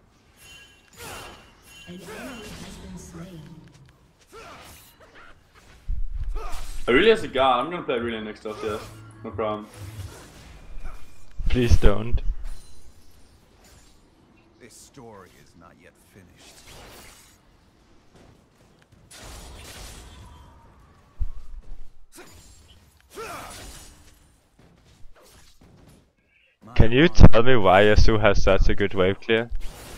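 Magic spells and weapon strikes clash in a game battle.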